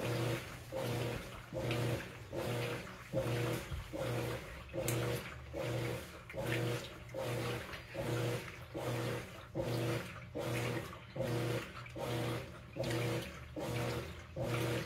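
Water and clothes slosh in a washing machine tub.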